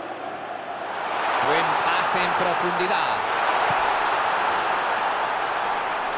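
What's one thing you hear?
A large stadium crowd roars steadily and swells louder.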